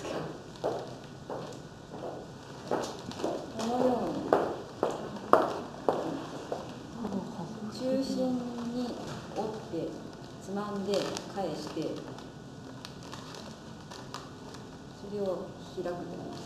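Cloth rustles as it is folded.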